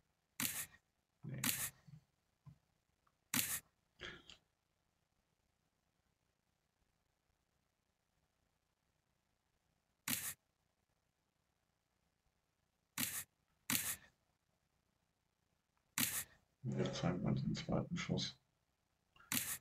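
Playing cards snap down one after another in short, sharp clicks.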